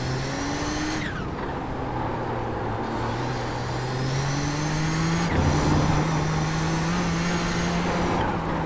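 A race car engine drones steadily, its pitch rising and falling through gear changes.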